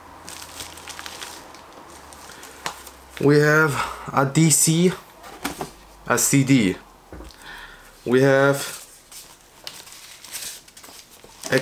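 Paper and plastic wrapping crinkle.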